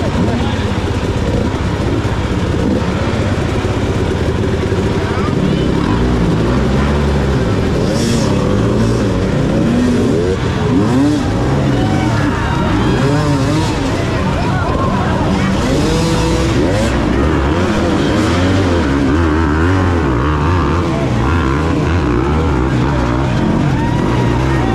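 Dirt bike engines rev and sputter loudly close by.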